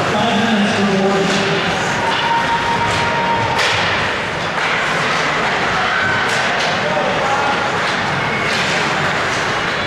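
A hockey stick slaps a puck with a sharp crack.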